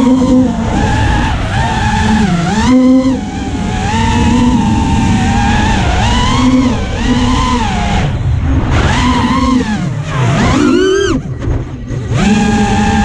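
Drone motors whine loudly, rising and falling in pitch with sudden dips.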